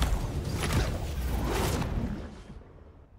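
Air rushes loudly past, as in a fast fall.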